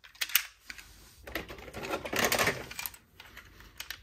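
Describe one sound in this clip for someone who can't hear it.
Toy cars clatter and knock together.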